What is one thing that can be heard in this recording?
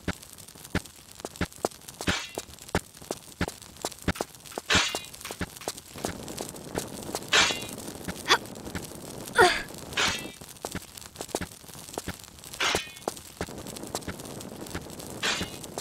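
Footsteps tap quickly on a stone floor.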